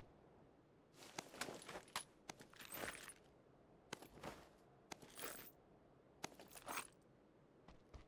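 Items rustle as gear is picked up.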